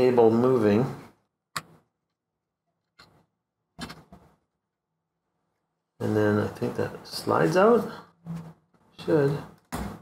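A plastic pry tool clicks against a circuit board.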